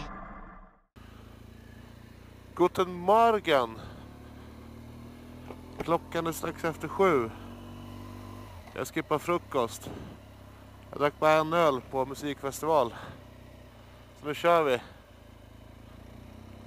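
A motorcycle engine hums and revs up repeatedly as it shifts through gears.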